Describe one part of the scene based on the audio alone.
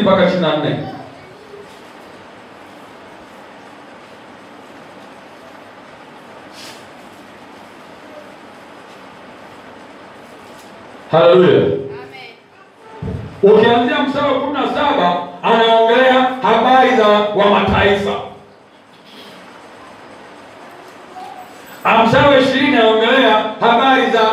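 A man speaks calmly in pauses, close to a microphone.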